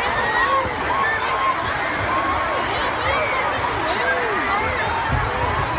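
A large crowd screams in panic in a vast echoing hall.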